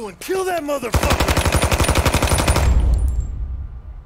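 A machine gun fires in a rapid burst.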